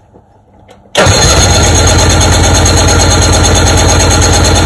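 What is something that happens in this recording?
A boat engine starts and runs loudly.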